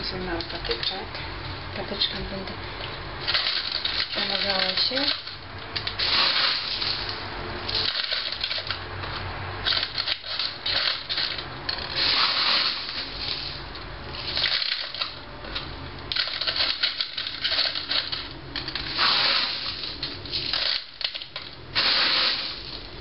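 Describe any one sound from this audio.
Leaves rustle as hands handle a potted plant.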